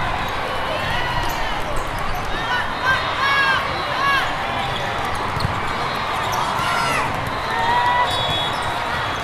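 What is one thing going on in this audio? Sneakers squeak sharply on a hard court floor.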